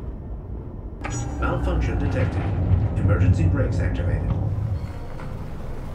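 A synthetic voice announces a warning through a car loudspeaker.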